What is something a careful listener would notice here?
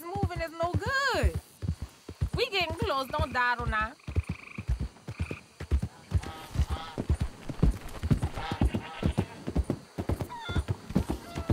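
A horse's hooves thud steadily at a gallop.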